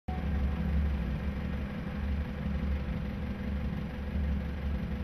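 A boat engine hums steadily and low.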